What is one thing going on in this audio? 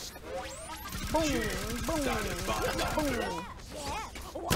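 A gatling gun fires rapid bursts in a video game.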